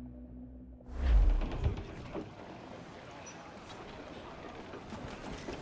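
Waves wash and splash around a wooden ship.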